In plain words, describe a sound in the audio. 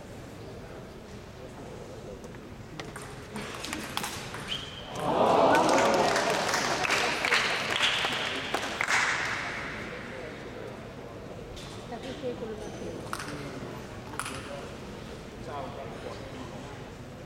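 A ping pong ball clicks quickly back and forth off paddles and a table.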